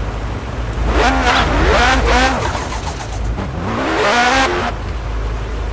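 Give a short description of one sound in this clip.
A car engine revs up and down sharply.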